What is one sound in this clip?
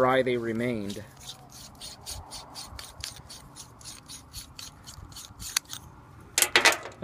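Small metal parts click and scrape as they are unscrewed.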